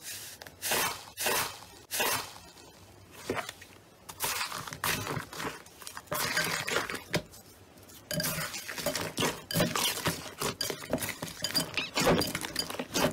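Hands knead slime mixed with foam beads, which crunch and squelch.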